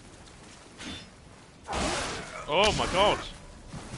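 A sword slashes and strikes during a fight.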